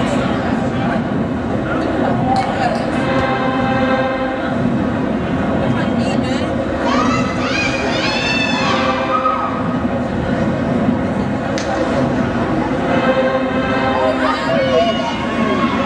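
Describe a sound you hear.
Upbeat music plays loudly over loudspeakers in a large echoing hall.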